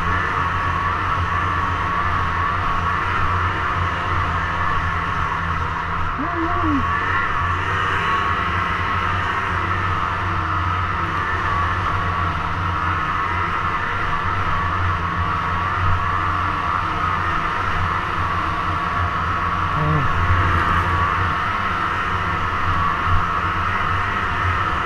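A snowmobile engine drones steadily at speed.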